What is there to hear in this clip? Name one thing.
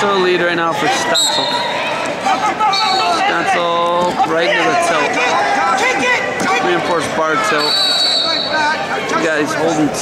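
Wrestlers' shoes squeak on the mat.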